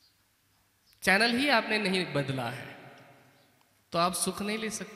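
A young man sings or chants into a microphone, with a ringing, echoing tone.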